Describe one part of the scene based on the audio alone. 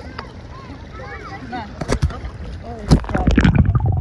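Water splashes close by.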